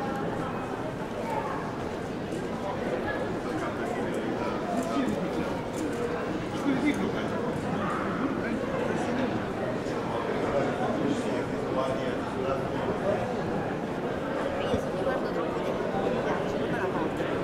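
Many people chatter in a busy outdoor street.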